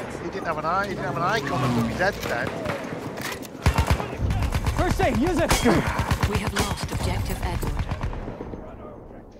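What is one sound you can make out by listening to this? Gunshots crack and explosions boom in a battle.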